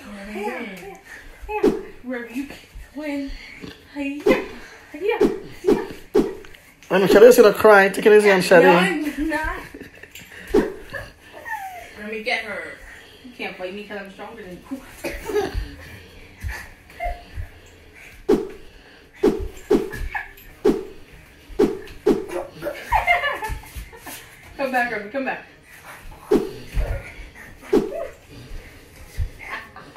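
Hands clap and slap in a quick rhythmic game.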